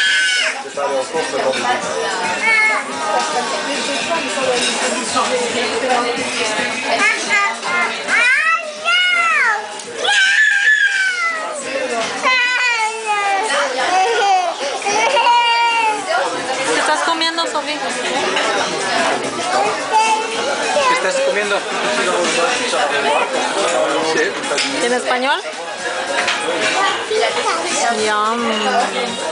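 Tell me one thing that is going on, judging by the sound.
A young girl talks and sings in a high, lively voice close by.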